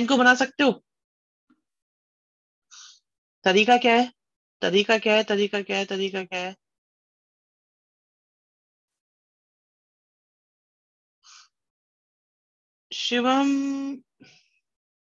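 A woman speaks calmly into a microphone, explaining in short phrases.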